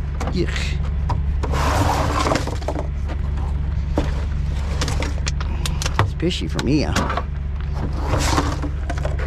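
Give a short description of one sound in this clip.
A plastic bin bumps and scrapes as it is handled.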